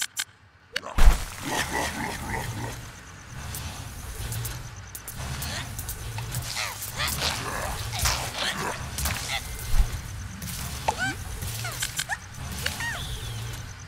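Cartoonish battle sounds of a video game clatter and pop.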